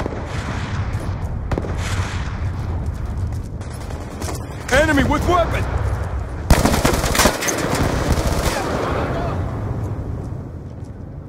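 Rapid gunfire bursts from an automatic rifle.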